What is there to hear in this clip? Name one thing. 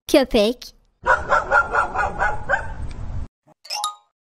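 A dog barks several times.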